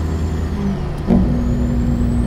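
A truck's gears shift with a short clunk.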